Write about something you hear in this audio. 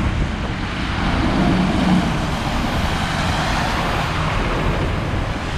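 Tyres hiss over wet slushy pavement.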